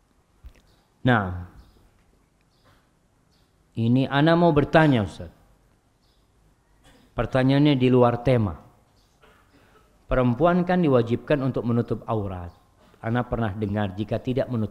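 A man speaks calmly into a microphone in bursts, with pauses between phrases.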